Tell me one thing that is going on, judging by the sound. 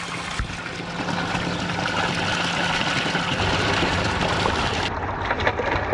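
Water gushes from a hose and splashes into a pool close by.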